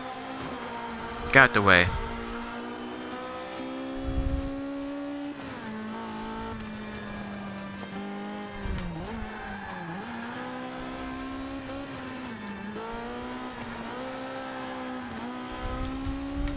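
A race car engine drones and revs up and down as it shifts gears.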